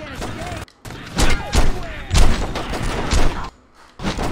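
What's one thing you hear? A handgun fires several shots.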